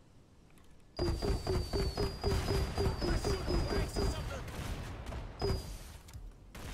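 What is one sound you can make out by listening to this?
A heavy weapon fires in a rapid, continuous burst.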